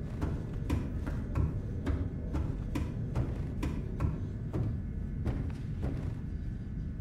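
Footsteps clang on metal ladder rungs in a steady rhythm.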